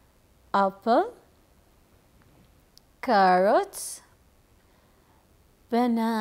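A young woman speaks slowly and clearly into a microphone, pausing between words.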